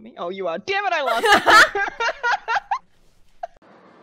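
Two young women laugh loudly.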